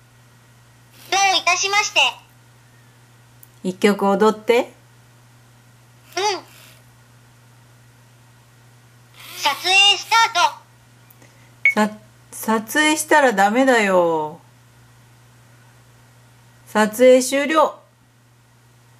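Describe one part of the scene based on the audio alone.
A small robot speaks in a high, cheerful synthetic voice, in short bursts.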